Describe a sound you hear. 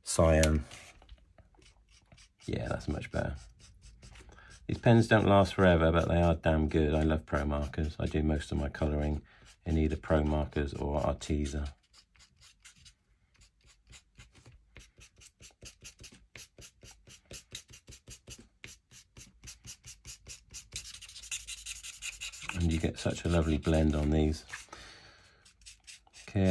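A felt-tip marker squeaks and scratches across paper.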